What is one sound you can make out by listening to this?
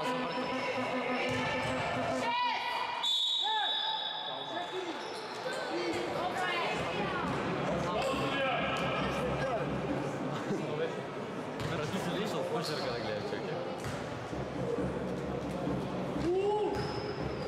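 Sneakers squeak sharply on a court floor in a large echoing hall.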